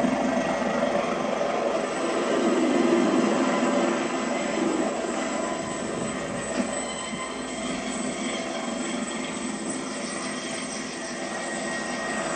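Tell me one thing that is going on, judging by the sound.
A helicopter's rotor whirs loudly close by.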